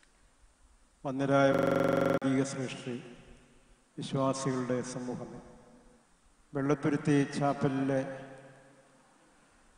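An elderly man chants slowly into a microphone, with echo, in phrases separated by pauses.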